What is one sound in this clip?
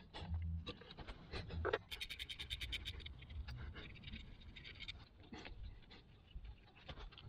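Metal parts clink and tap close by.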